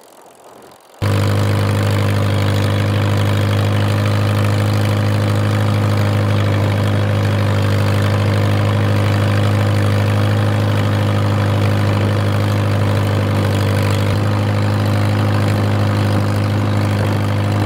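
A tractor engine chugs loudly and steadily up close.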